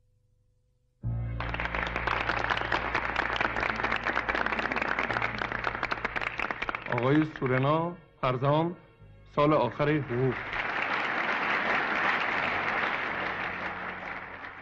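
A large crowd claps and applauds loudly.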